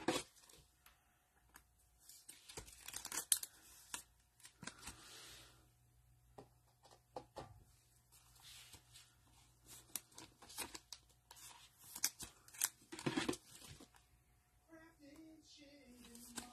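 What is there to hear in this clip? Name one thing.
A rigid plastic card holder clicks and scrapes as a card is pushed in.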